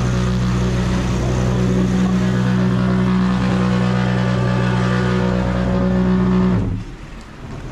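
A tractor engine hums loudly close by.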